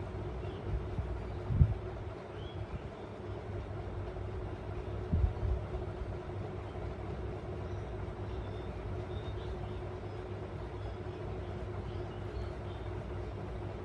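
A small bird chirps softly, close by.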